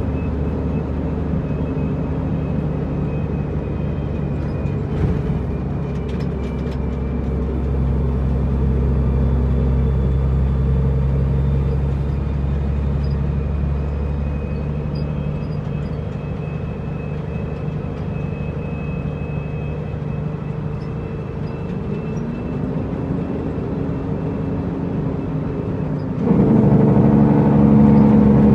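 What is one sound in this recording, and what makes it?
A truck's diesel engine drones steadily from inside the cab, rising and falling in pitch.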